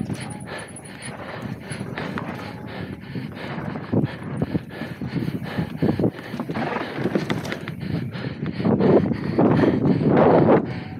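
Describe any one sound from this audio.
Bike tyres rumble and rattle over rough dirt.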